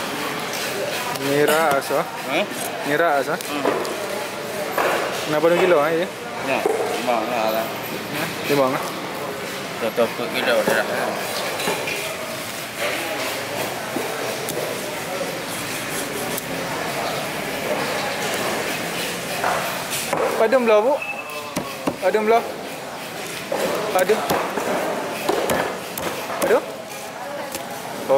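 A knife chops and slices through fish on a wooden block.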